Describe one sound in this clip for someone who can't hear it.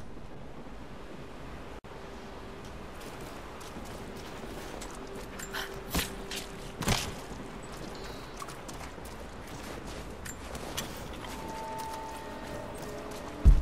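Footsteps crunch through snow and slush.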